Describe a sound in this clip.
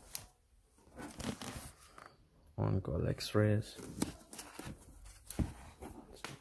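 Books slide against each other and bump on a wooden shelf.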